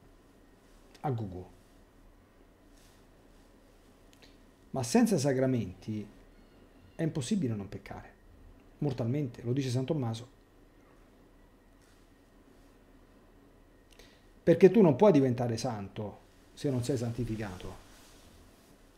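A middle-aged man speaks calmly and thoughtfully, with pauses, close to a microphone.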